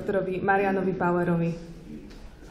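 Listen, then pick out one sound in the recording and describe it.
A young woman speaks into a microphone in an echoing room.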